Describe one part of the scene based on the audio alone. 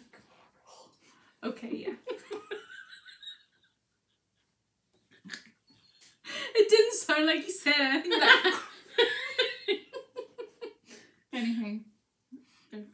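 Two young women laugh together.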